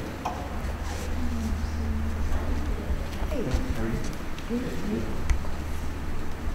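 Women talk quietly nearby in a room with a faint echo.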